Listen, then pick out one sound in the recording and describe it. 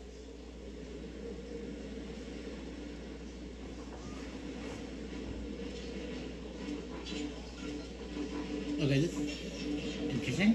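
Soft music plays from a television's speakers.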